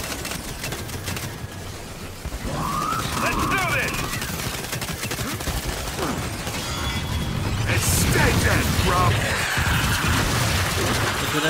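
Rapid gunfire rattles.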